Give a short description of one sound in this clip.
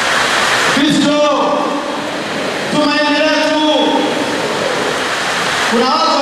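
A man speaks with animation into a microphone, heard through loudspeakers in an echoing room.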